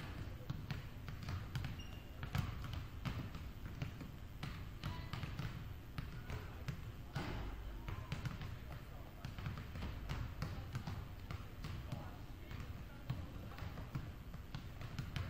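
Basketballs bounce on a hardwood floor in a large echoing gym.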